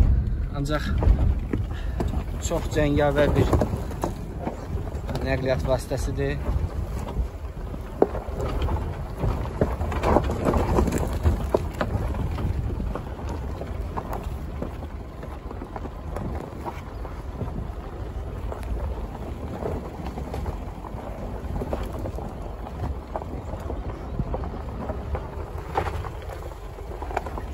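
Tyres crunch over a rough gravel track.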